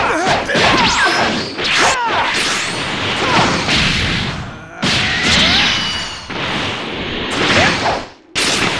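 Energy blasts whoosh and crackle.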